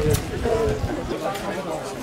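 A group of people talk over a meal.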